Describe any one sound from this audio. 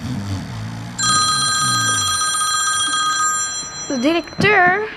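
A phone plays a ringtone close by.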